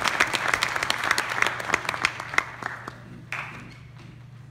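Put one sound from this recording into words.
An audience claps in a large hall, and the applause fades away.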